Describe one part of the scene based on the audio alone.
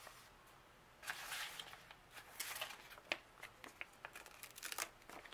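A sheet of sticker paper rustles.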